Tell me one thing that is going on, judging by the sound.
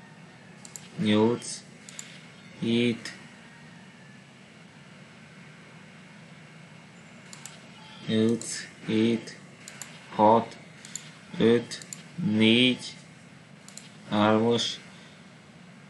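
A man speaks calmly into a microphone in short bursts.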